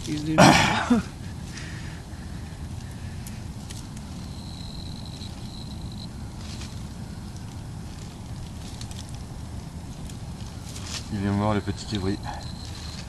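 Dry leaves and brush rustle under a man's hands.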